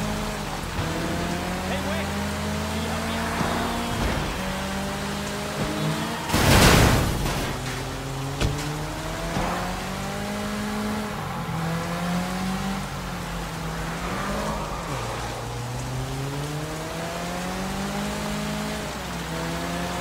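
Rain pours steadily.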